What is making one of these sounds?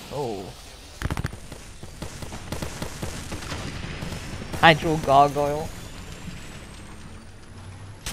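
Quick footsteps patter over rocky ground.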